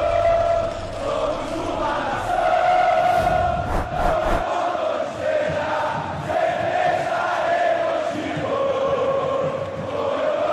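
A large crowd sings and chants in an open stadium.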